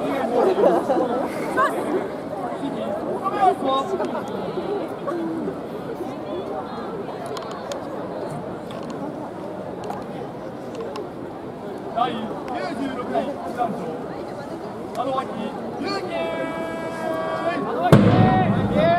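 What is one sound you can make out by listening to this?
A crowd of people chatters and calls out in the open air.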